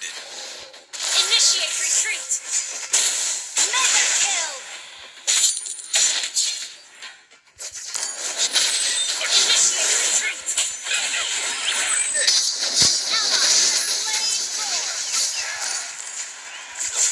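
Game sound effects of spells and attacks clash and burst rapidly.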